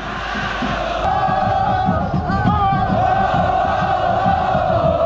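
A young woman sings along close by.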